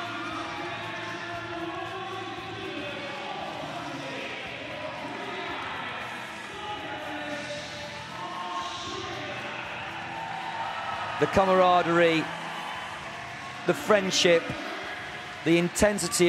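A crowd chatters and cheers steadily in a large echoing hall.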